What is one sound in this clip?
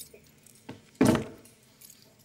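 A wooden box thumps down onto a table.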